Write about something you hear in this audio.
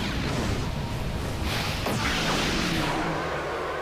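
A loud explosion bursts and echoes.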